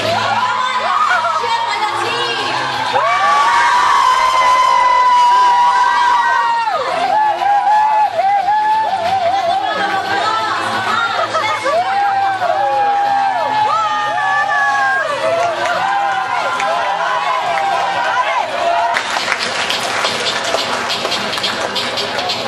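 A large crowd of young people cheers and sings loudly together in an echoing hall.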